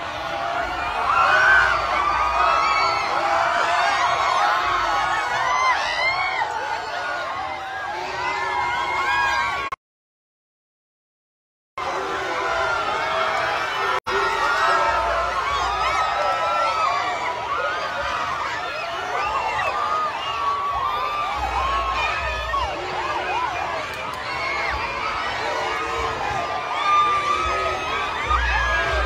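A large crowd outdoors cheers and chants loudly.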